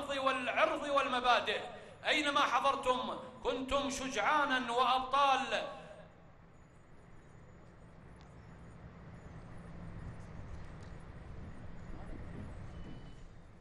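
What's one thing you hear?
Heavy armoured vehicles rumble slowly past outdoors.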